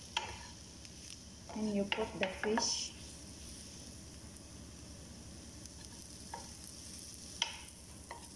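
A wooden spoon knocks and scrapes against a metal pan.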